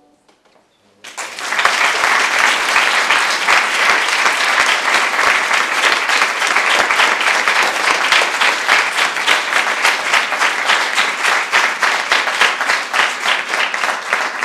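An audience applauds loudly in a large room.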